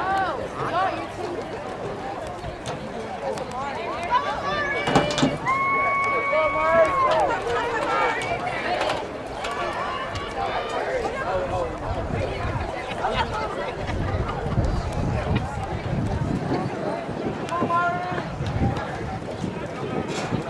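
A crowd of spectators chatters and cheers outdoors at a distance.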